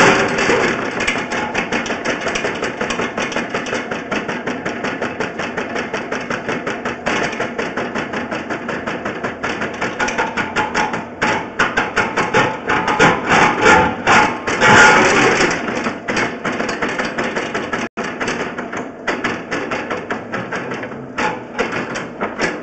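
A drill auger grinds steadily through crumbling soil and rock with a rapid, rhythmic rasp.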